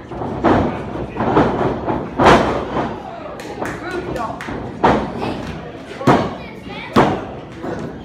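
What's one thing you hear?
Wrestlers' bodies thud loudly onto a ring mat.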